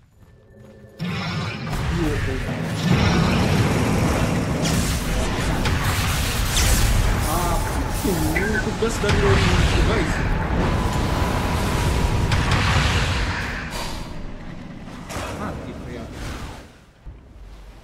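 Loud battle effects crash, whoosh and boom.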